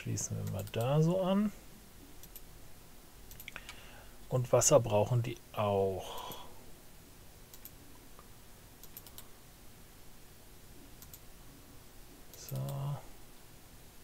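A man speaks calmly and briefly into a close microphone.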